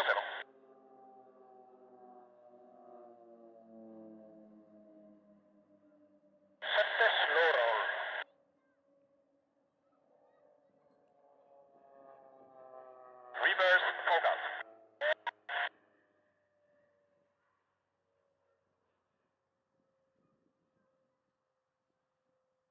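Propeller planes drone overhead, their engine pitch slowly falling as they pass.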